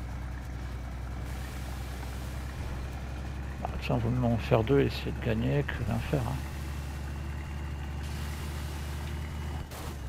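A heavy vehicle engine rumbles steadily as it drives.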